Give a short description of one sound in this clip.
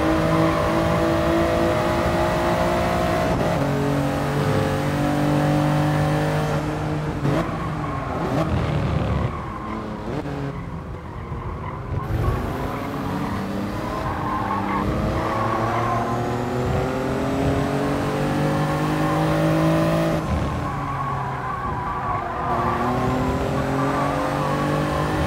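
A racing car engine roars, rising and falling in pitch as it shifts gears and brakes.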